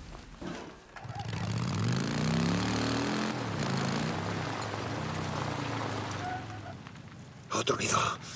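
A motorcycle engine revs and rumbles.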